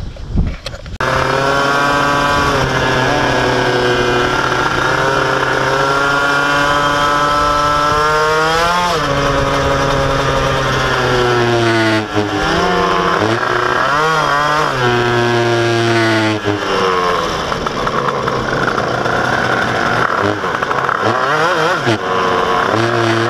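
A motorcycle engine drones loudly, revving up and down as gears shift.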